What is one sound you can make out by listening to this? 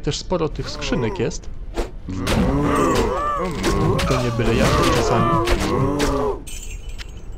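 Blows and spells clash in a fight.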